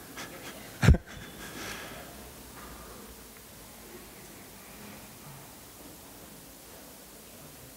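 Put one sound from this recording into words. A man speaks into a microphone at a distance, his voice echoing through a large hall.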